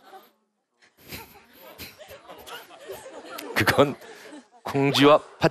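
An audience laughs and claps.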